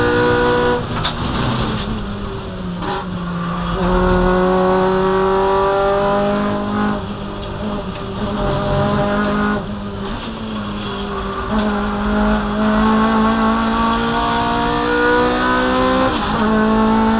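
The car's gearbox clunks sharply with each gear change.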